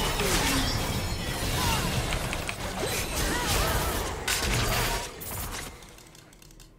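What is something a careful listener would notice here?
Video game battle sound effects clash and crackle.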